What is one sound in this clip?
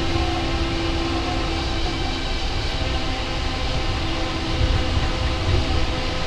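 A train's motor whines with a steady tone.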